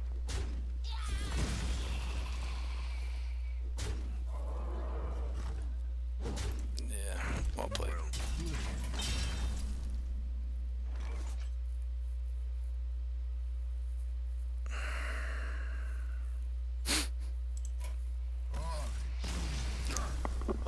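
A man talks into a close microphone with animation.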